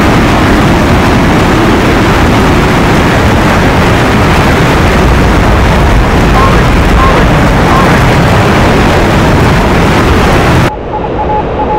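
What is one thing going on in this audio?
A jet fighter's engine roars as it flies low at speed.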